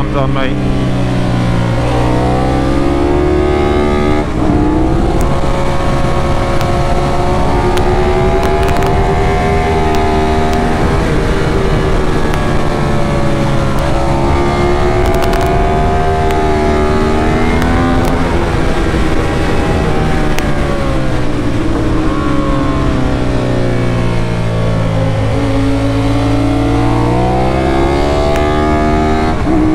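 A motorcycle engine screams at high revs, rising and falling as it shifts gears through the bends.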